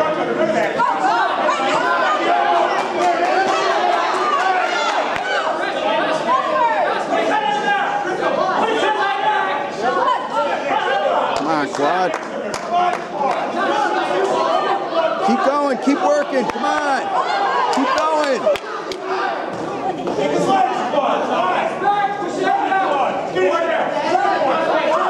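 Men and women shout encouragement nearby in a large echoing hall.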